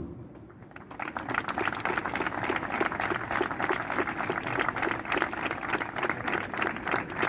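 A crowd applauds outdoors.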